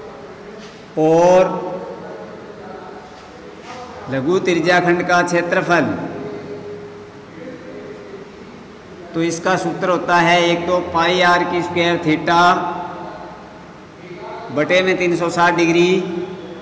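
A man speaks loudly and clearly in a room with some echo.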